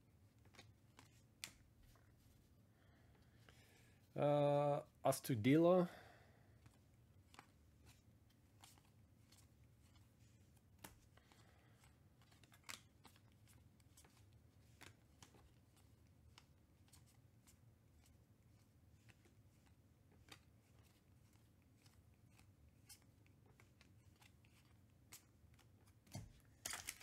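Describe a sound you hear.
Trading cards flick and slap softly as they are flipped through by hand.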